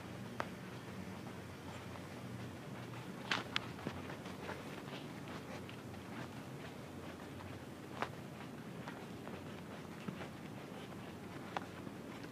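Footsteps pad softly on carpet.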